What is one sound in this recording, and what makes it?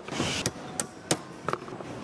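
A hammer taps on plastic.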